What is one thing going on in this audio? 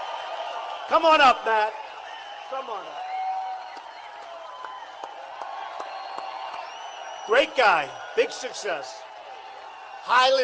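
People in the crowd yell out loud calls.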